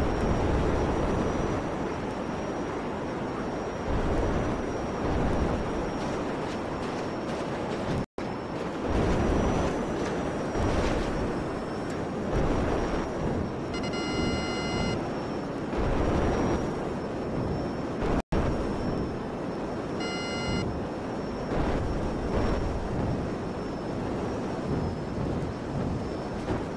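A jetpack engine roars steadily in flight.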